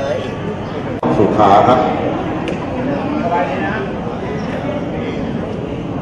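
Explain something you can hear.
A crowd murmurs in an echoing hall.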